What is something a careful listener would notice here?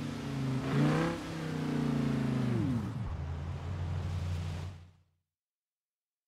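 A sports car engine roars, revving up and then dropping to a low idle before cutting out.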